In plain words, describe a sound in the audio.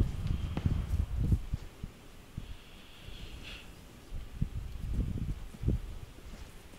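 Footsteps crunch on dry dirt and grass.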